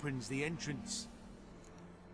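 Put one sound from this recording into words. A man speaks calmly and steadily, close by.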